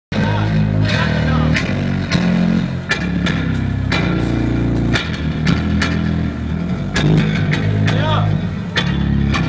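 An electric bass guitar plays a loud, low riff through big speakers outdoors.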